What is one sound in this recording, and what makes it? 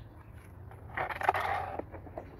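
Plastic plant pots knock and rustle together close by.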